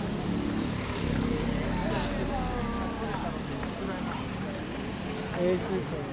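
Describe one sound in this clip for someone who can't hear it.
A van drives past slowly.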